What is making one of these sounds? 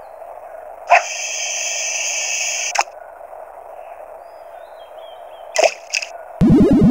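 Electronic game beeps chime briefly.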